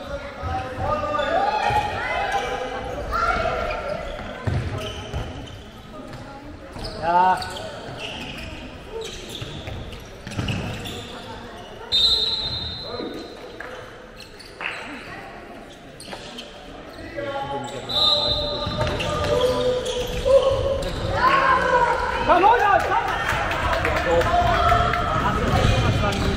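Teenage boys shout to each other across a large echoing hall.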